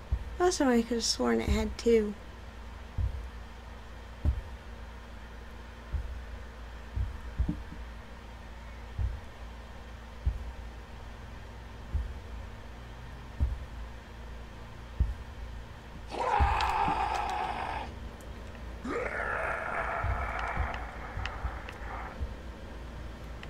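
Footsteps thud softly on the ground.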